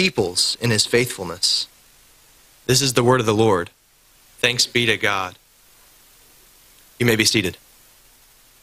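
A man speaks calmly through a microphone, reading out in a room.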